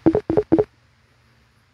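Coins chime in quick, bright bursts.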